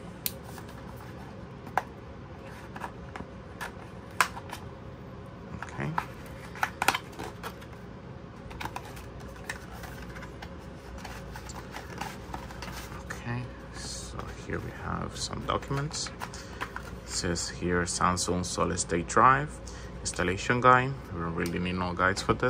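Cardboard and plastic packaging rustles and clicks in someone's hands.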